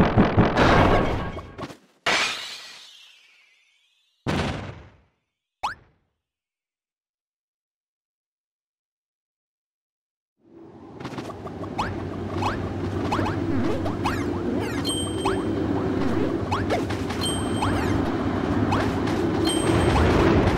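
Cartoonish fighting game blows and bursts sound in quick succession.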